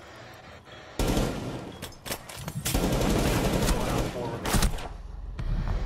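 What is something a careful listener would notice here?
Rapid gunshots crack close by.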